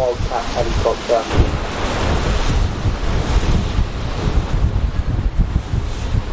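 Choppy water laps and splashes nearby.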